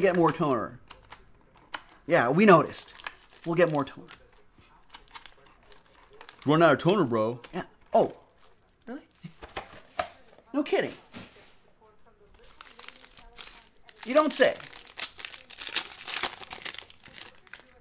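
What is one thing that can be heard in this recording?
Foil packs rustle as hands pull them from a box.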